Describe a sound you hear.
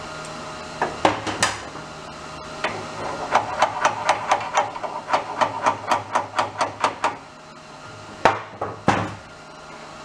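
Metal parts clink and knock now and then.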